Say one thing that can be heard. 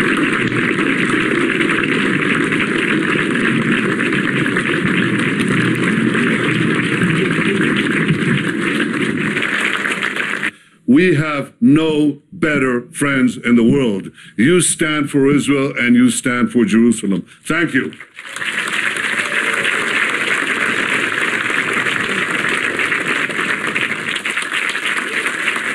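A large crowd applauds loudly outdoors.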